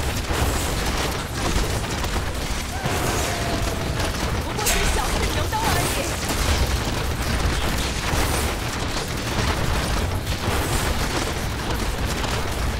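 Game spells crackle and boom in rapid bursts.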